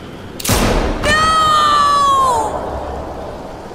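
A young boy screams in anguish.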